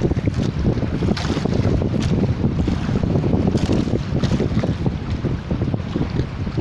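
A small boat engine chugs steadily close by.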